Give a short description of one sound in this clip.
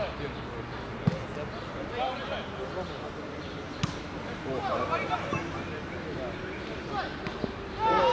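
A ball is kicked with a hard thud.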